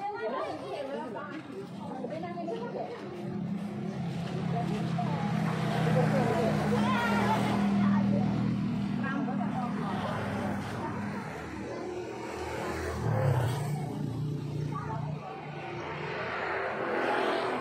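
Several women chatter close by outdoors.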